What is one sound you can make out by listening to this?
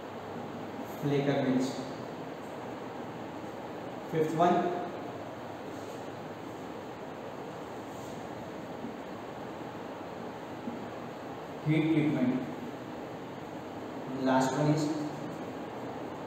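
A man speaks in short bursts, calmly, nearby.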